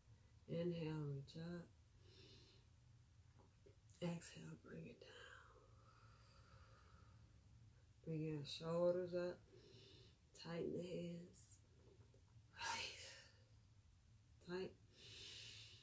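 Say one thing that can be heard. A woman speaks calmly and slowly, close to a microphone, with pauses.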